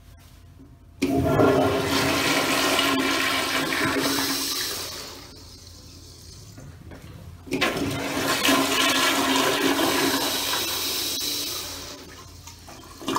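A toilet flushes with a loud rush of water.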